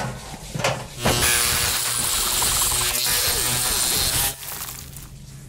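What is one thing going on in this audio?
An electric hair clipper buzzes loudly close by.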